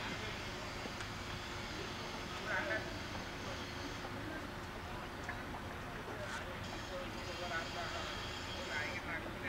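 Men call out faintly across an open field.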